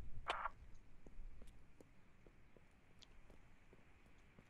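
Footsteps tread softly and steadily on a hard surface.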